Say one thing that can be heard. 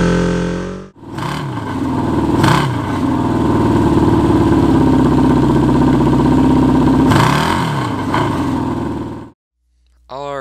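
A motorcycle engine idles smoothly close by.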